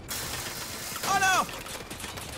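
A heavy metal crash and clatter of debris rings out.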